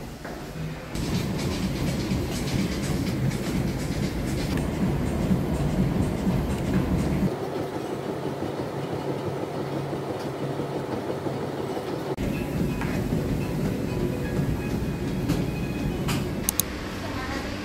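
Footsteps thud steadily on a running treadmill.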